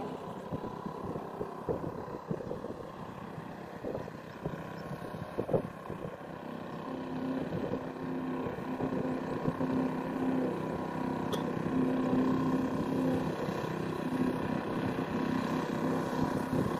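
A hand tractor engine chugs steadily in the distance.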